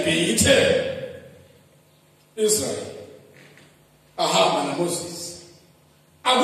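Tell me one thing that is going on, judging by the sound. A man preaches with animation through a microphone and loudspeakers, in a reverberant space, pausing between phrases.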